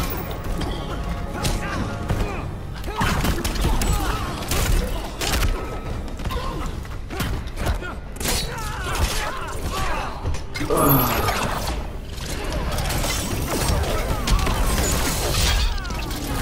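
Heavy punches and blows land with loud thuds and crashes.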